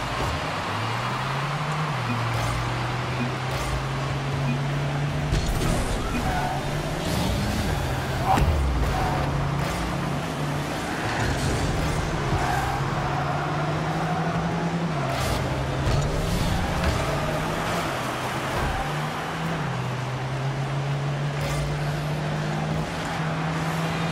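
A car engine hums steadily, revving up and down now and then.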